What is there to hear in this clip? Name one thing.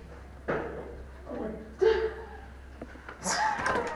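A door clicks open and swings.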